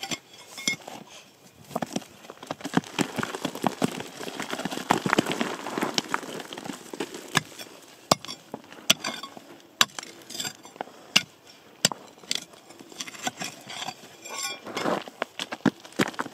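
Loose stones clatter as a hand sorts through them.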